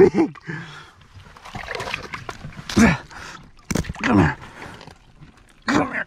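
Water splashes as a fish is lifted from a hole in the ice.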